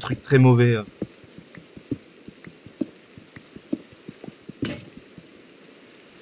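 A shovel digs into gravel with quick crunching strokes.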